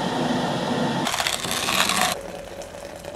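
A hand coffee grinder crunches as its crank turns.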